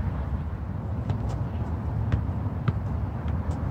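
A football is tapped by a foot a few times.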